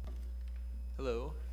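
A young man begins speaking into a microphone.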